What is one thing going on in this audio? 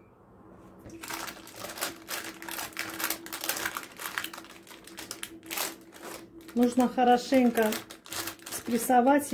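A plastic scoop presses down on a crunchy nut mixture.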